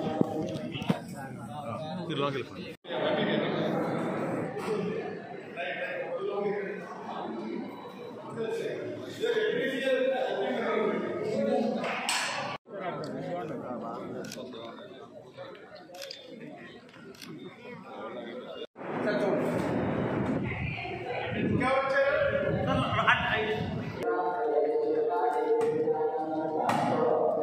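A crowd of men and women chatters nearby.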